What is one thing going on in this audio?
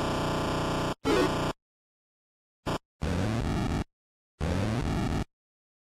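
Electronic blips and sound effects from a retro game ring out.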